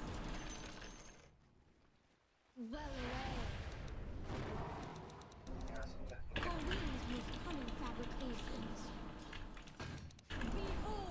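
Game spell and combat effects crackle and whoosh.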